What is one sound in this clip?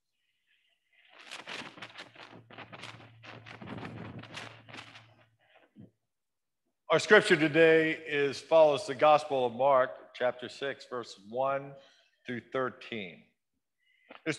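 A man reads aloud calmly, heard through a microphone in an echoing hall.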